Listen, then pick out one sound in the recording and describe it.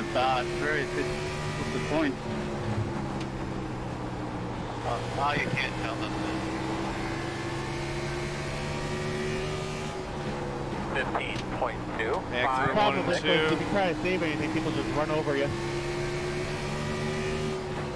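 Racing car engines drone steadily.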